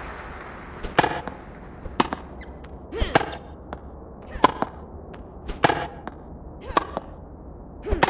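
Tennis balls are struck with sharp pops in a quick back-and-forth rally.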